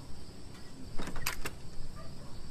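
A door opens with a clunk.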